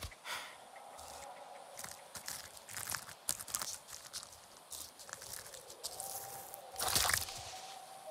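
A fruit is plucked from a plant with a soft snap.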